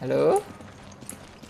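A young man briefly exclaims into a close microphone.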